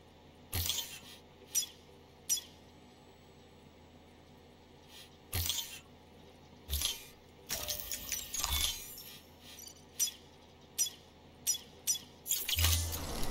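Short menu clicks and beeps sound now and then.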